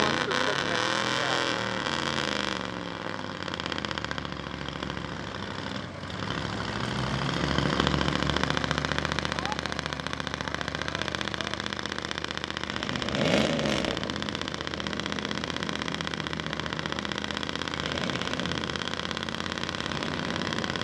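A truck engine revs hard and roars.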